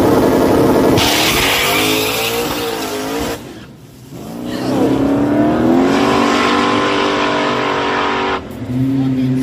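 A truck engine roars loudly as it accelerates away and fades into the distance.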